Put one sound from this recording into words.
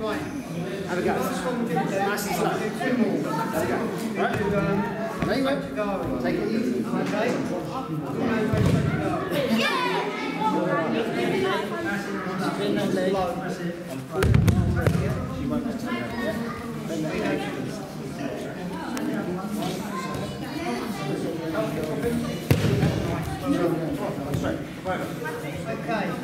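Many people chatter in the background of a large echoing hall.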